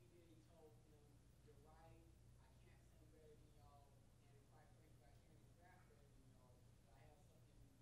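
A man speaks calmly into a microphone over loudspeakers in a large echoing hall.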